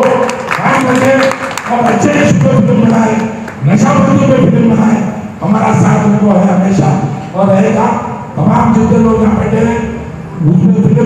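An elderly man speaks with animation into a microphone, heard through a loudspeaker.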